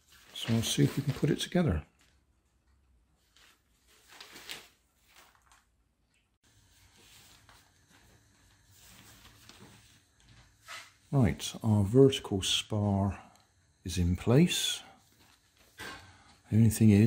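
Thin nylon fabric rustles and crinkles as it is handled.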